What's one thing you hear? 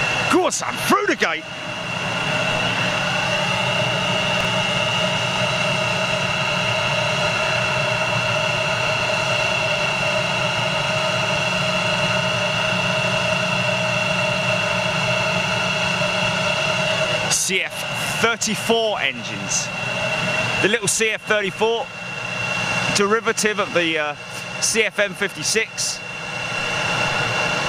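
A jet engine whines steadily close by as an airliner taxis.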